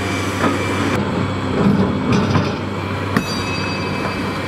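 A dump truck engine drones as the truck drives along a gravel road.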